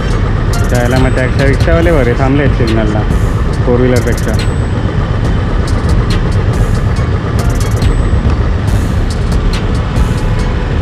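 A motorcycle engine idles close by with a low, steady rumble.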